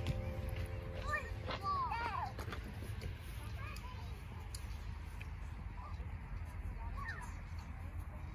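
A small child squeals and calls out nearby outdoors.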